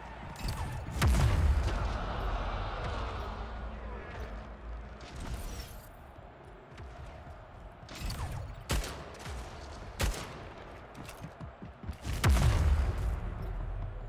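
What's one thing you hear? Heavy booming blasts go off in the game.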